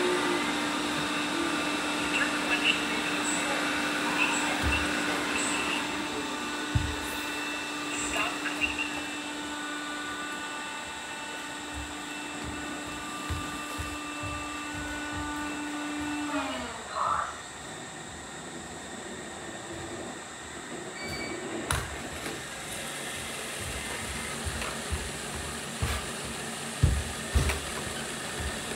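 A robot vacuum whirs and hums steadily.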